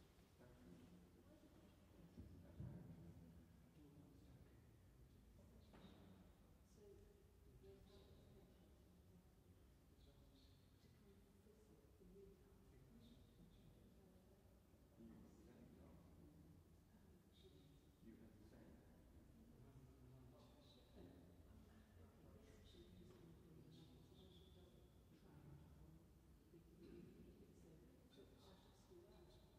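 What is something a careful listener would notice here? A pipe organ plays in a large echoing hall.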